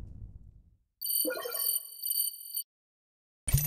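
Bright game reward chimes ring out.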